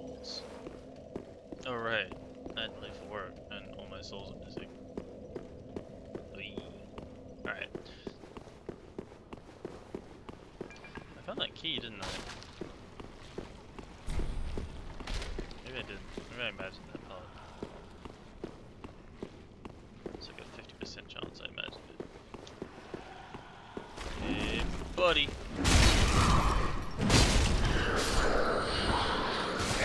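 Armoured footsteps clank on stone floor.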